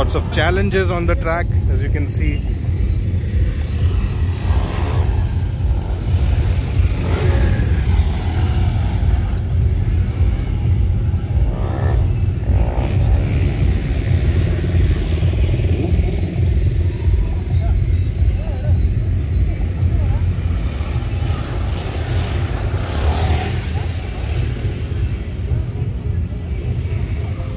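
Dirt bike engines rev and roar as riders pass close by outdoors.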